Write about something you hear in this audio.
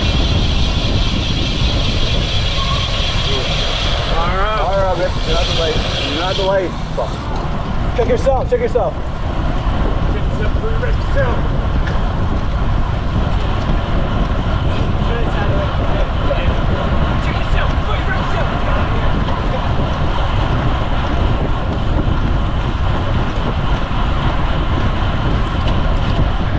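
Wind rushes steadily over the microphone.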